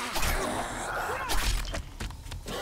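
A knife stabs into flesh with heavy thuds.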